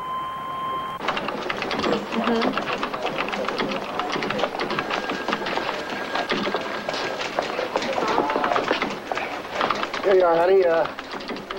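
A keyboard clatters with rapid typing.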